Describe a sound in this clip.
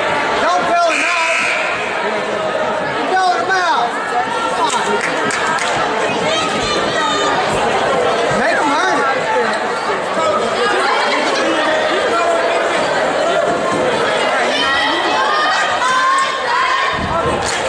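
A crowd chatters and shouts loudly in a large echoing gym.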